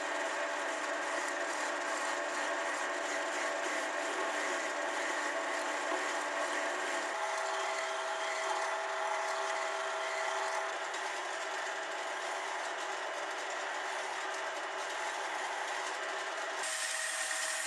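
A metal file rasps against spinning wood.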